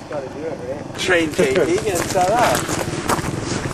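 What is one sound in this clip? A young man speaks outdoors.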